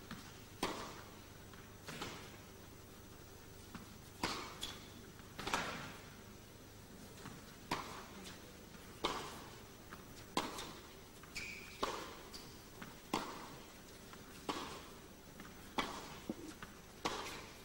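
Tennis balls are struck back and forth with sharp pops, echoing in a large hall.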